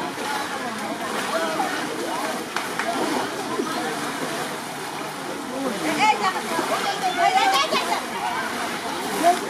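Water splashes as people wade through a pond.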